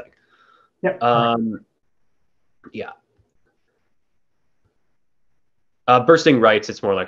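A young man speaks calmly into a close microphone, with pauses.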